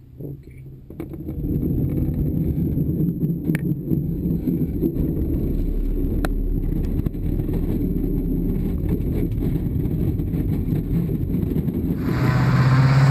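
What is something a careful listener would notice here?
Wheels rumble loudly over a bumpy runway, heard from inside a cockpit.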